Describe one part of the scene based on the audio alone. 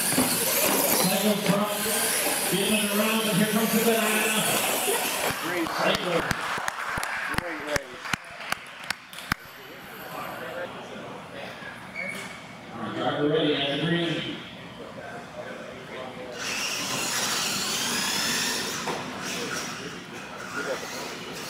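Small electric motors whine as radio-controlled trucks race and jump.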